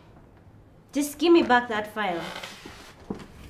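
A woman speaks sharply nearby.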